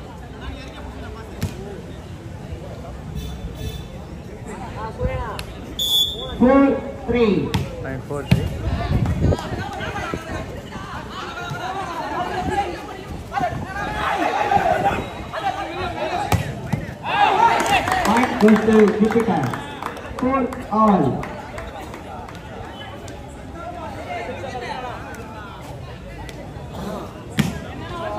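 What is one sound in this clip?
Young men shout and call out across an outdoor court.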